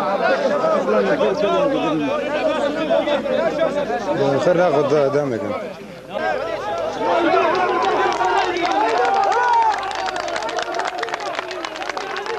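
A large crowd of men and women chants and shouts loudly outdoors.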